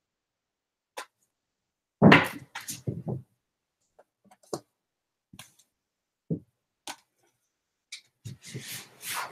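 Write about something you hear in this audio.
Books knock and slide on a shelf.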